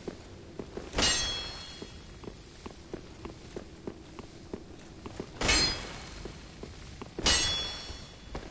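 A sword swings and strikes with a sharp metallic ring.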